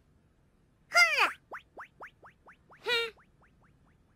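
A kitten meows.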